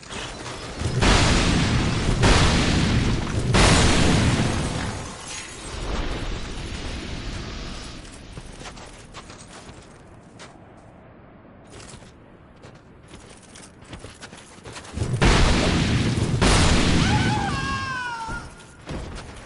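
A heavy sword strikes a creature with loud thuds.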